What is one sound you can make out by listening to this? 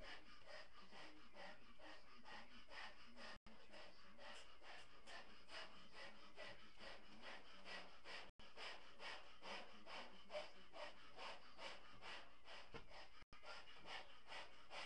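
A large rubber balloon rubs and squeaks in quick, steady strokes.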